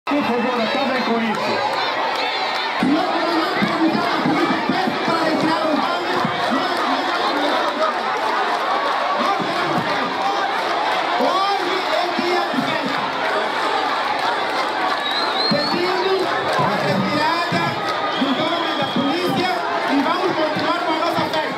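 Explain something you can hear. A large crowd chatters in the background.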